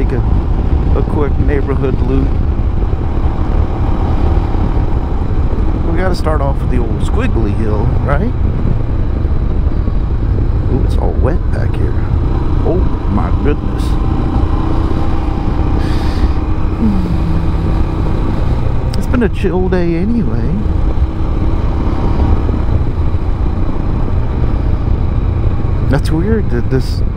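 A motorcycle engine rumbles steadily, revving up and down as it shifts gears.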